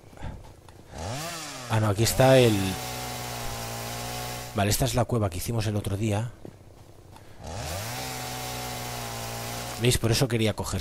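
A chainsaw revs up and whines steadily as it cuts through wood.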